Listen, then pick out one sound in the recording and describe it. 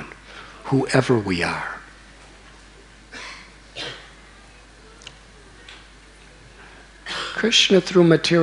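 A middle-aged man speaks with animation into a microphone, in short bursts with pauses.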